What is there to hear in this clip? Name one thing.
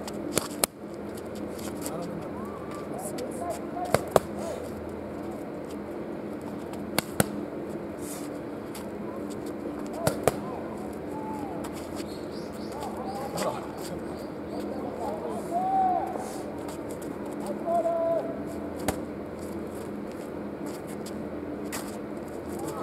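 Gloved punches smack sharply against padded mitts.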